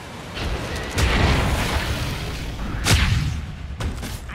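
An icy magic blast shatters with a crackling burst.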